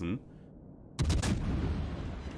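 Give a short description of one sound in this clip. Heavy naval guns fire with a deep boom.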